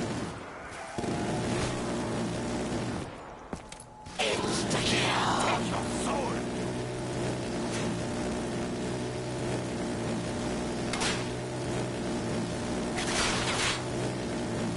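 A gun fires in short bursts.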